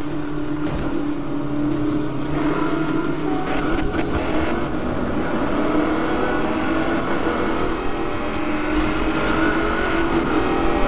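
Tyres hiss on the road.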